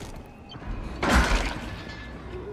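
Boots land with a heavy thud on metal grating.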